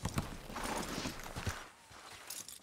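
A horse trots with hooves thudding on dirt.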